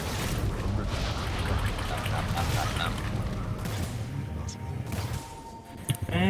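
Fantasy battle sound effects clash, crackle and whoosh in quick bursts.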